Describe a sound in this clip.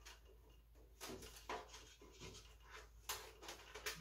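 Plastic and metal parts click and rattle as a computer case is handled.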